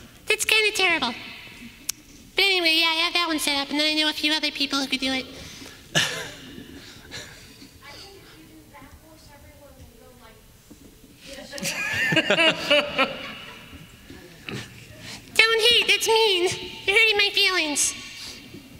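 A young woman speaks with animation through a microphone in a large echoing hall.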